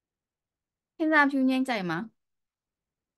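A young woman speaks a few words briefly over an online call.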